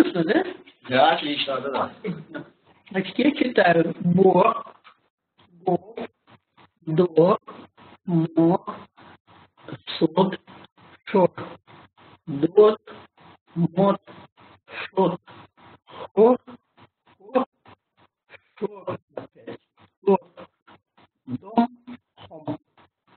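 A young man speaks slowly and clearly through an online call, reading out single words with pauses between them.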